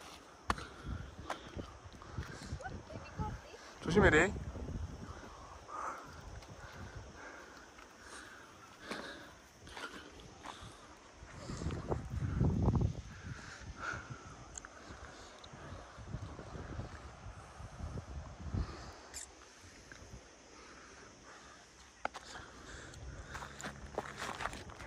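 Footsteps crunch on a stony dirt trail.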